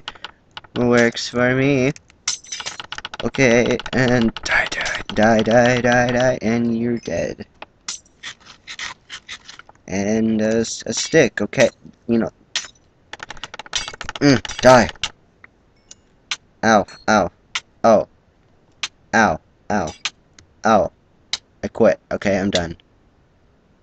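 A sword strikes repeatedly with short thuds.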